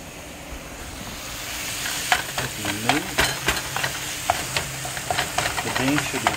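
Meat sizzles in a hot frying pan.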